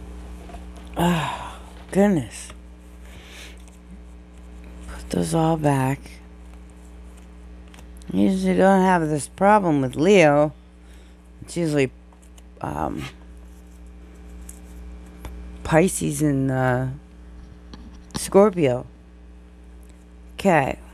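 A woman speaks calmly and close by, in short phrases with pauses.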